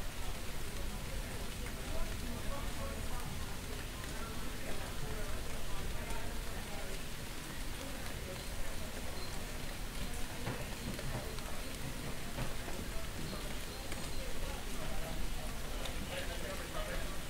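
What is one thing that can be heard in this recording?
A few adults chat in the distance outdoors.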